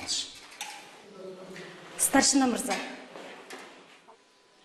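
A middle-aged woman speaks calmly and asks a question nearby.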